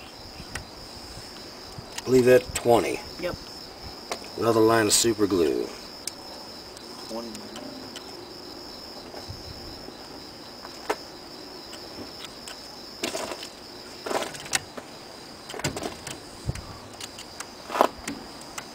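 Small metal parts click and tap as a man works with his hands.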